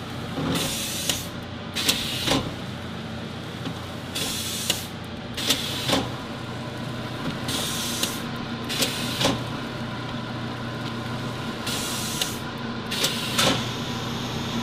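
Air hisses in short bursts at regular intervals.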